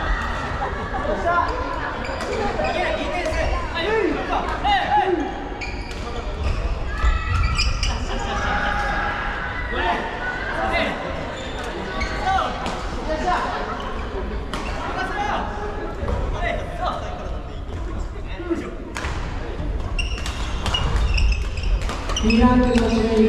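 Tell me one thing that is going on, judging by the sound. Many people shout and call out across a large echoing hall.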